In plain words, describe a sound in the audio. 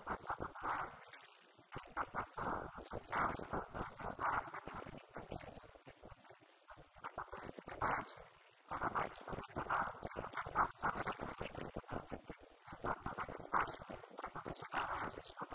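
A woman speaks with animation into a microphone, heard through a loudspeaker.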